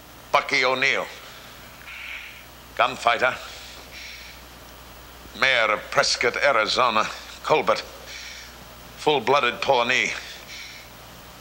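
An elderly man speaks loudly and expressively in short bursts, with pauses between them.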